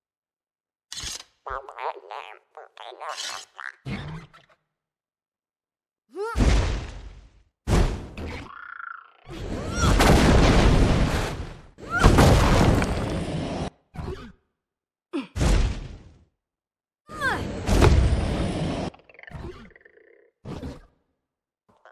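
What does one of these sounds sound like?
Blades slash and clang in bursts of heavy hits.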